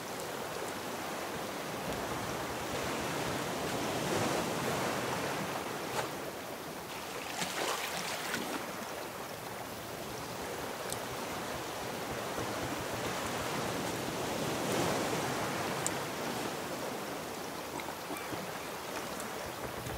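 Ocean waves wash and splash steadily.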